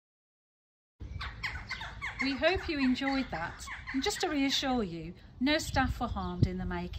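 A woman speaks calmly close by, outdoors.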